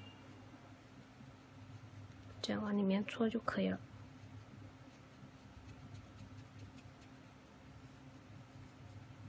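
A crochet hook softly rustles through fluffy yarn.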